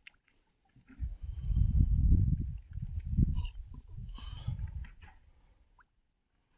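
Water sloshes around a man's legs as he wades.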